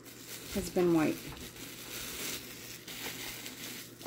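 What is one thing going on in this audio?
Plastic wrapping crinkles as it is pulled off.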